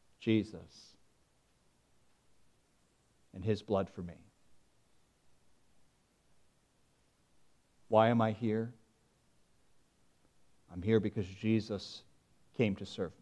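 A man speaks with long pauses into a microphone.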